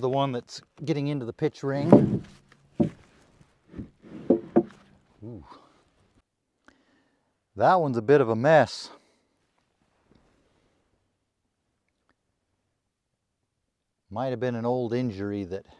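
A man speaks calmly, close to a clip-on microphone.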